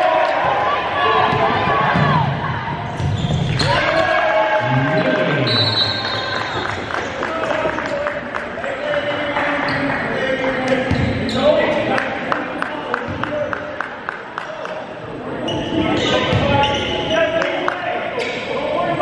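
Young men shout and call out to each other across the gym.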